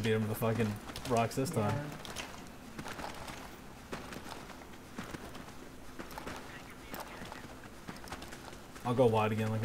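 Footsteps crunch on a gritty floor.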